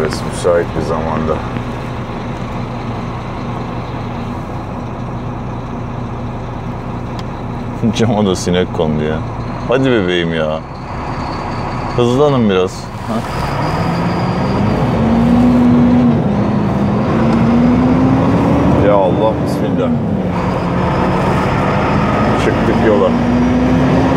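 A truck engine hums steadily inside the cab, then rises in pitch as the truck speeds up.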